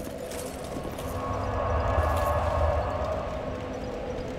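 A deep whooshing rush swells and fades.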